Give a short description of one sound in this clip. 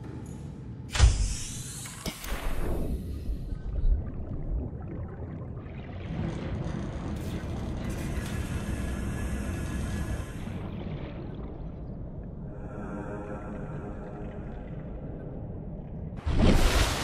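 Water gurgles and rumbles low all around.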